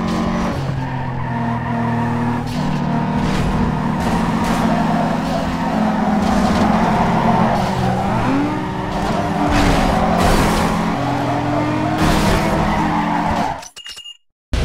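A racing car engine roars and shifts gears at high speed.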